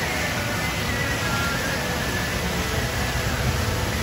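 Water splashes at the bottom of a water slide.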